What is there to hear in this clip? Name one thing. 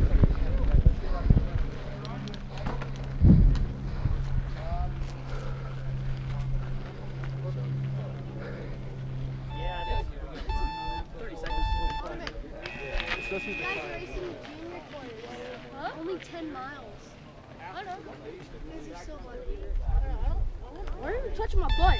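Bike tyres rumble and rattle over a dirt trail.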